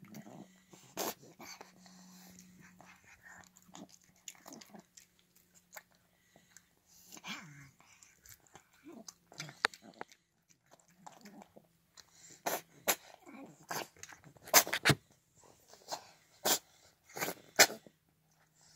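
A cat's tongue and teeth click against a metal bowl.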